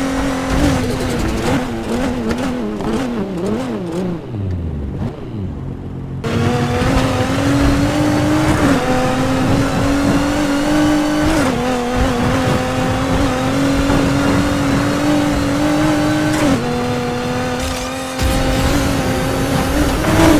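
A racing car engine roars at high speed, shifting gears as it accelerates.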